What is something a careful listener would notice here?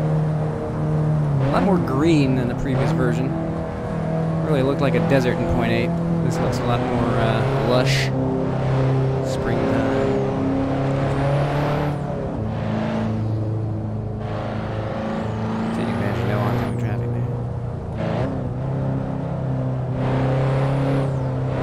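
A car engine hums steadily, its pitch rising and falling as the car speeds up and slows.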